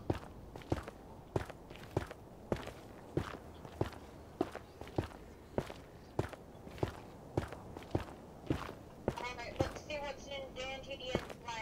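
Footsteps thud on hard ground at a steady walking pace.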